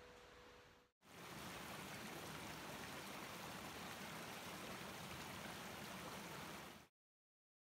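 Shallow water trickles and burbles steadily over stones.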